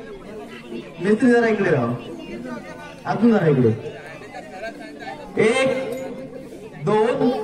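A woman sings loudly through a loudspeaker in short bursts, heard outdoors.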